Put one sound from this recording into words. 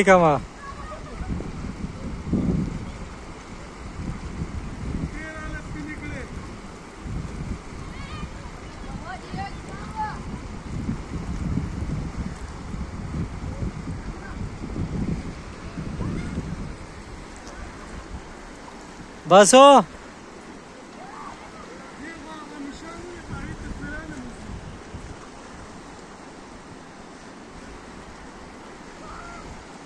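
A river rushes and gurgles steadily over rocks.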